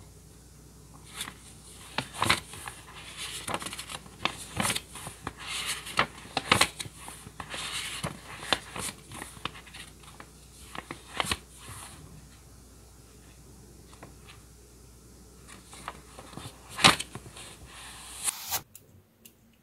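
Paper pages rustle and flap as a sketchbook's pages are turned.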